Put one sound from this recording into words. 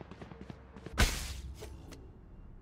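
A burst of smoke goes off with a sudden loud whoosh.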